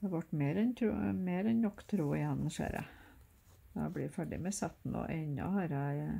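Thread rasps softly as it is pulled through cloth.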